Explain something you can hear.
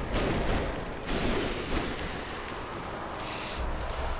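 Metal weapons clash and slash in a fight.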